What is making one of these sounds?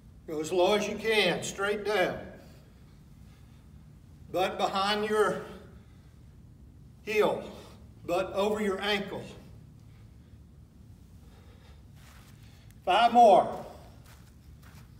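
A middle-aged man speaks calmly and clearly, close by, in short bursts.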